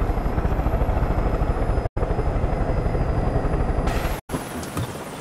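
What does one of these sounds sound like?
A vehicle engine rumbles loudly, close by.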